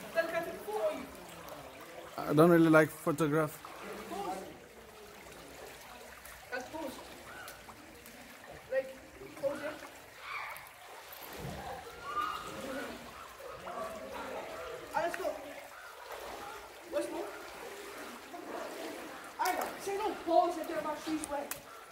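Shallow water babbles gently over stones.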